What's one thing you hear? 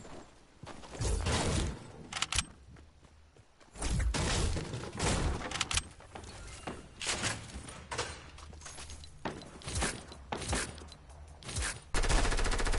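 Game sound effects chime and whoosh in short bursts.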